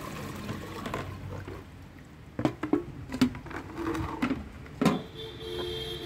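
Metal pots knock and clatter against each other.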